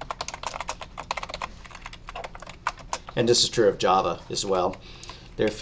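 Keys click rapidly on a computer keyboard.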